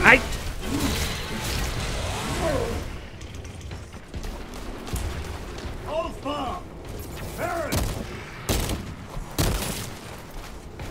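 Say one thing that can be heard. Heavy gunshots and impacts boom and crash.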